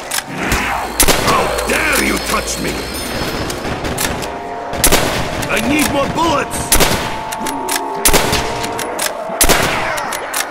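Gunshots fire in sharp bursts.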